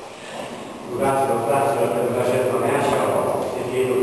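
A man speaks steadily into a microphone, heard over loudspeakers in a large echoing hall.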